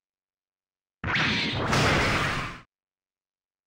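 An explosion bursts with a roaring blast.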